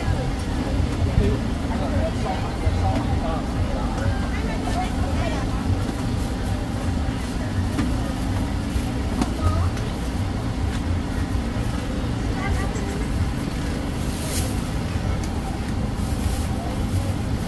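Dry cane stalks rustle and crackle as they are handled.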